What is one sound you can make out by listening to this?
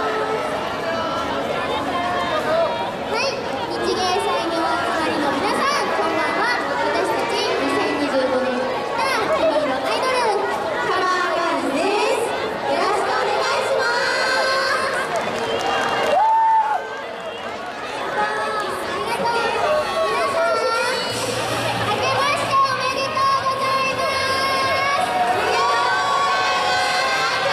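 Pop music plays loudly through loudspeakers.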